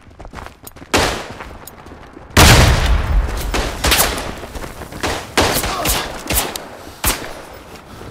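Gunshots fire in quick bursts and echo in a tight space.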